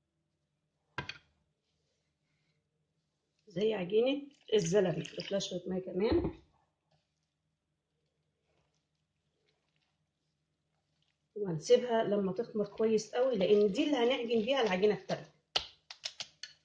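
A whisk clinks against a glass bowl.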